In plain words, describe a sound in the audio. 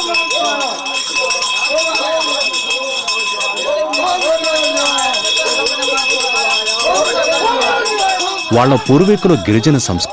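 Several people chant together nearby.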